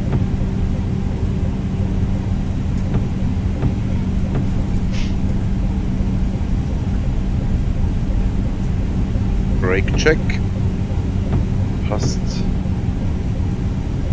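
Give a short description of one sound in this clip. Aircraft engines hum steadily.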